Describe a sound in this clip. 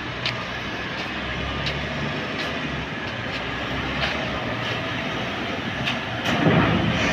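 Metal clanks and crunches as an excavator crushes a vehicle.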